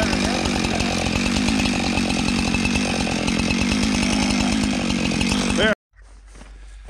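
A chainsaw roars loudly as it cuts through a log.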